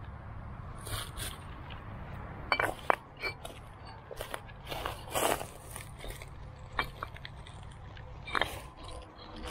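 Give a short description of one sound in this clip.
Stones knock and scrape against each other as they are picked up.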